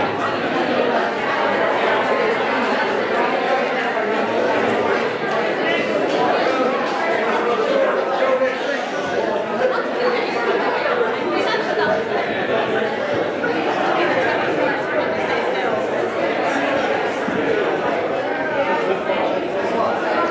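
A man plays a keyboard piano in a softly echoing room.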